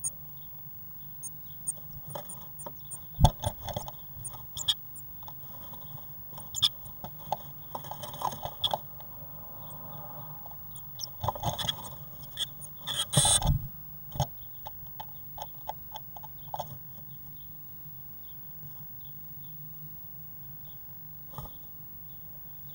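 A blue tit rustles in dry nesting grass inside a wooden nest box.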